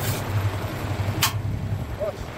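Metal clanks as a plough is adjusted by hand.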